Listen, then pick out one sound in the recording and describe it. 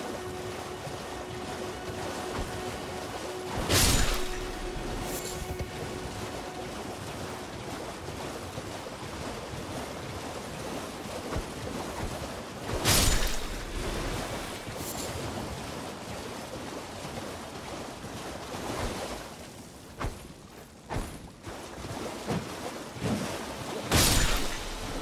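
Hooves thud quickly on wet ground.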